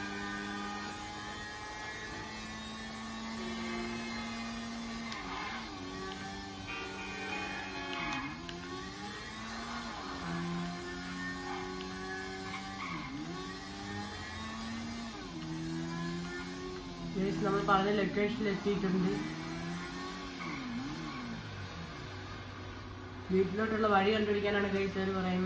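A motorcycle engine hums steadily and revs up and down as gears shift.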